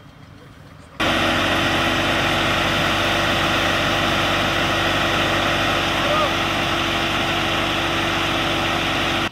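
A fire engine's pump drones loudly and steadily.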